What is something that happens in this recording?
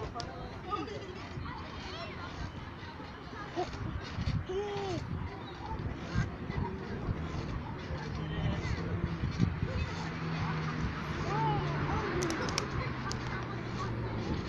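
A young girl giggles and chatters close by.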